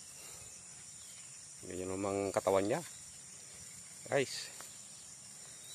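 A cow's hooves tread softly on grass.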